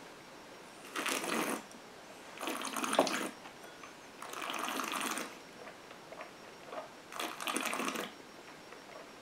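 A man breathes out heavily through pursed lips.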